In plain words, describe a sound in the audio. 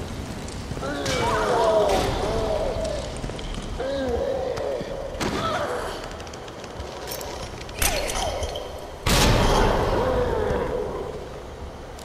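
A monster growls and snarls loudly.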